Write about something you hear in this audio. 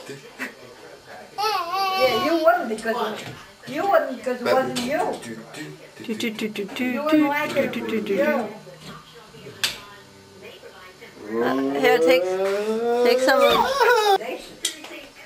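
A baby laughs and squeals with delight close by.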